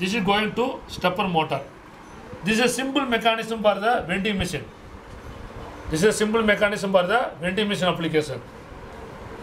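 A man explains close by, speaking steadily in bursts.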